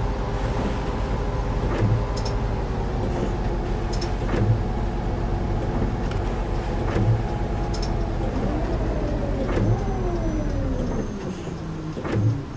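A bus engine hums steadily, then winds down as the bus slows to a stop.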